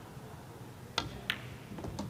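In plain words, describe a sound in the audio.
A cue strikes a ball with a sharp tap.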